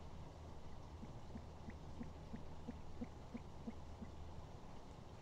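An owl shuffles and scratches in dry nesting material.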